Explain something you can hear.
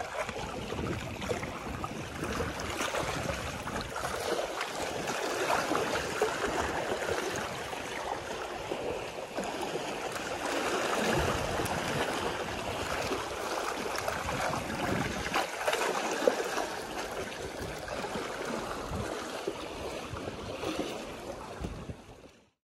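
Wind blows and buffets outdoors.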